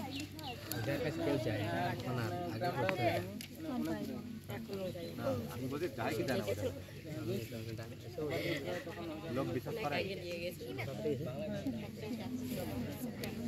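A young man speaks calmly outdoors, close by.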